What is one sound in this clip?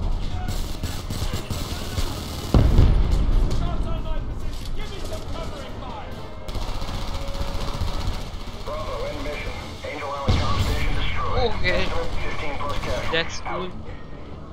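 Gunfire rattles in bursts, echoing off hard walls.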